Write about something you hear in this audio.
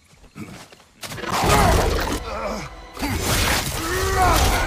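Heavy blows thud and clash in a fight.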